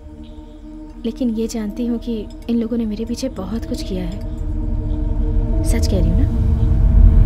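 A young woman speaks quietly and tensely close by.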